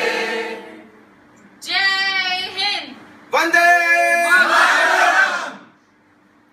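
A crowd of men and women sings together loudly.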